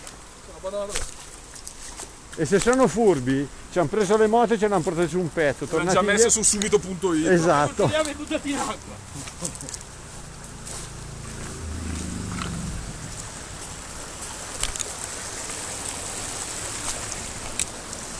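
Boots splash and scrape on wet stones.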